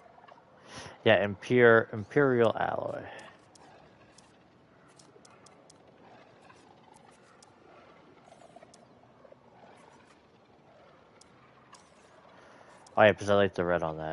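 A small robot chirps and warbles in rapid electronic beeps.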